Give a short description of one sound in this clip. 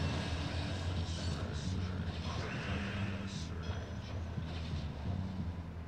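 Game sound effects chime and swoosh in short bursts.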